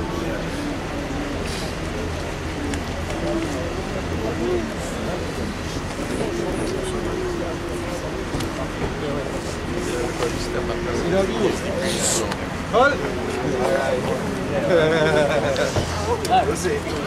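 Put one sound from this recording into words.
A crowd of men and women murmur and talk nearby, outdoors.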